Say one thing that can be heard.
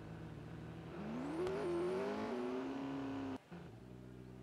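A race car engine revs up loudly, then drops back.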